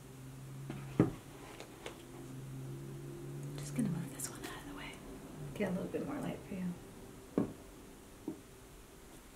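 Leather boots knock softly against a wooden table.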